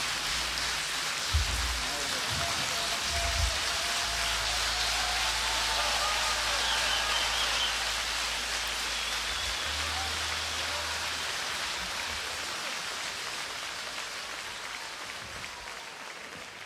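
A large crowd applauds loudly in a big hall, slowly fading toward the end.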